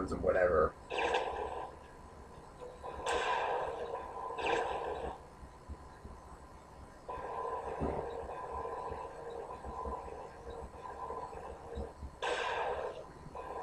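A video game tank engine hums steadily through a television speaker.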